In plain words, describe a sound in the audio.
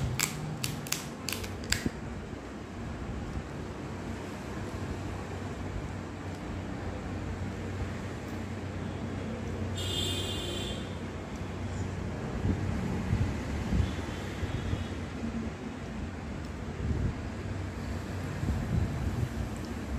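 A woman chews crisp puri close up.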